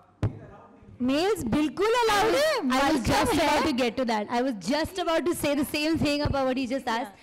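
A woman sings loudly into a microphone.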